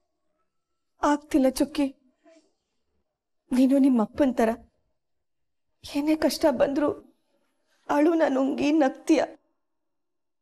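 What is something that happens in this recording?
A woman speaks calmly and with concern, close by.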